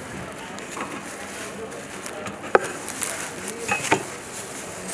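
A long knife chops on a wooden board.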